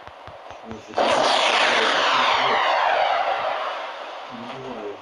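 A loud blast roars and slowly fades.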